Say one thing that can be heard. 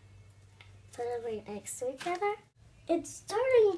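A young girl talks close by with animation.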